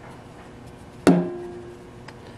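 A plastic jug knocks once against a metal pan.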